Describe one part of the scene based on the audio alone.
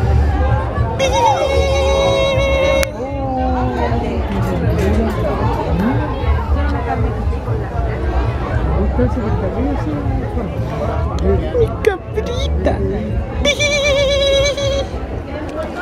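A goat bleats loudly nearby.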